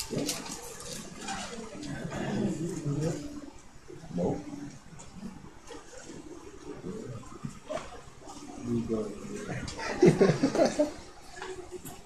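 Several men laugh and chuckle close by.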